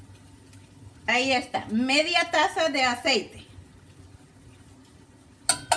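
Oil pours from a small metal pot.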